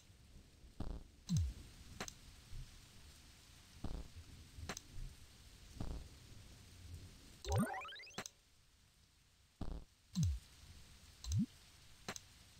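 Short electronic clicks and blips sound now and then.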